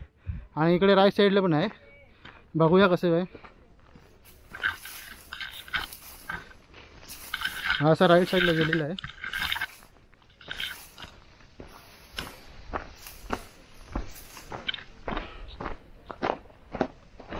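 Footsteps crunch on dry grass and dirt.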